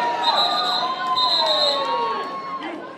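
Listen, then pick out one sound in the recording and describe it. A whistle blows in short sharp blasts in a large echoing hall.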